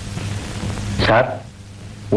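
A man answers sharply.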